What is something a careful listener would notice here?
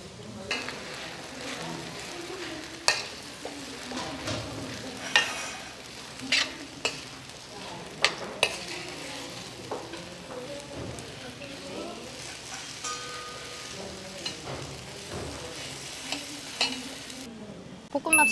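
A metal spoon scrapes and clanks against a hot pan.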